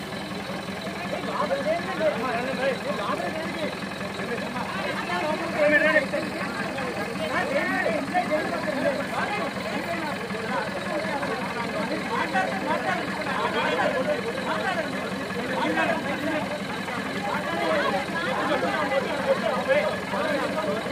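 A crowd of men and women shout and argue loudly outdoors.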